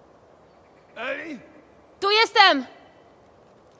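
A girl calls out loudly.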